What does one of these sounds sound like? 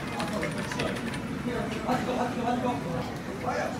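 A computer mouse clicks.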